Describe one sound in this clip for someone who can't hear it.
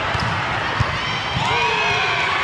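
A volleyball is struck with a sharp slap in a large echoing hall.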